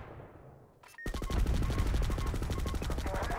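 A heavy machine gun fires in a rapid, steady burst.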